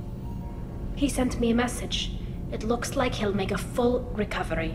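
A woman answers calmly.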